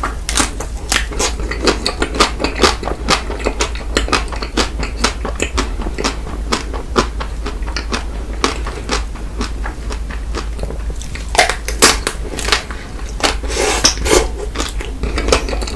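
A man chews and bites into soft chocolate close to a microphone, with wet smacking sounds.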